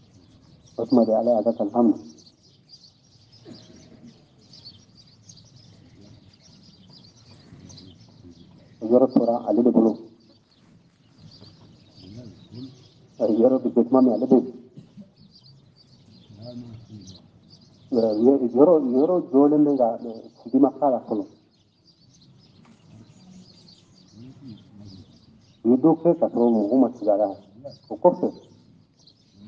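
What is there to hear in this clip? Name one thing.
An elderly man chants in short melodic phrases with pauses between them.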